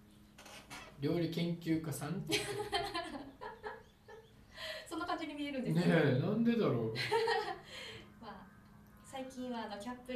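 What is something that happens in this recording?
A woman speaks animatedly close to a microphone.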